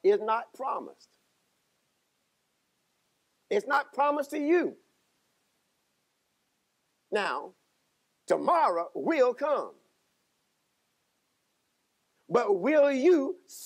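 A middle-aged man preaches with animation through a microphone, pausing between phrases.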